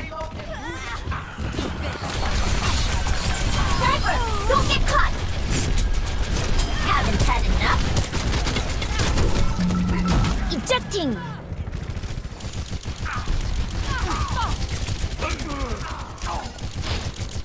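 Rapid video game gunfire blasts and crackles.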